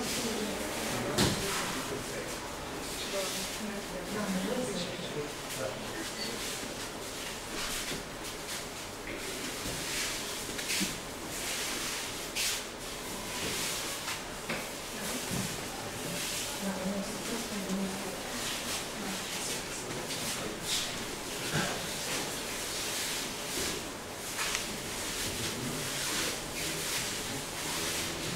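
Bare feet shuffle and thud softly on a padded mat.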